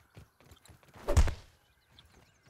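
A stone strikes a plant stalk with a dull thud.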